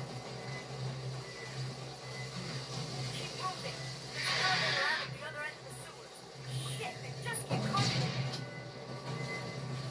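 Game sound effects and music play through a television speaker.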